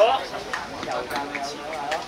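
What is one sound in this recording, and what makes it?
Two players slap hands together in a high five.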